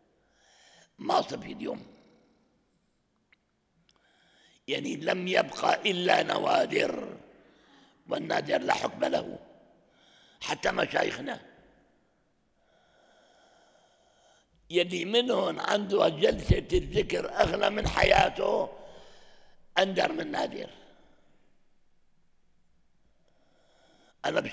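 An elderly man speaks slowly and earnestly into a close microphone, with pauses between phrases.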